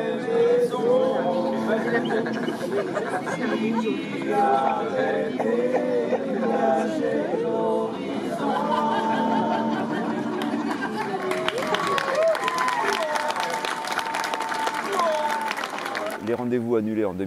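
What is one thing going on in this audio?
A group of men and women sing together outdoors.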